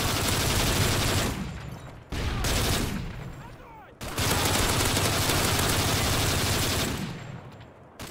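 Explosions boom and echo.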